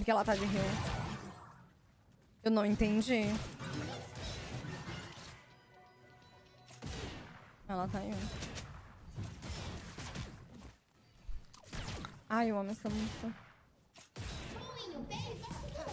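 Magical blasts and clashing weapons of a fantasy battle ring out in quick bursts.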